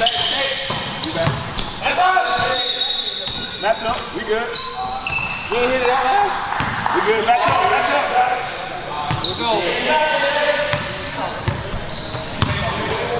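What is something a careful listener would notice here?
Young men shout and call out across the hall.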